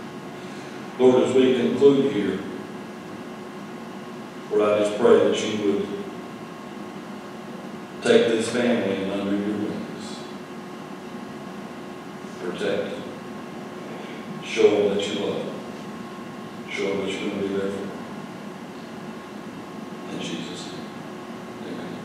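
A middle-aged man speaks calmly and slowly through a microphone, with pauses, in a room with some echo.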